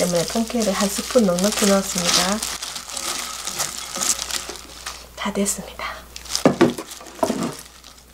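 Gloved hands squish and toss sticky food in a glass bowl.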